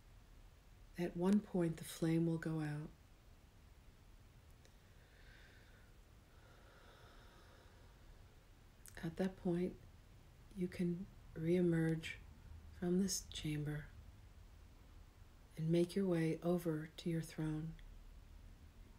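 A middle-aged woman speaks calmly and slowly, with long pauses, close to the microphone.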